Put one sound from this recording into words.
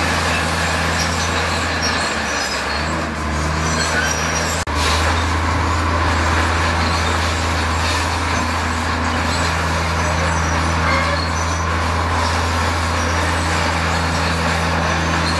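A dump truck engine idles with a low hum.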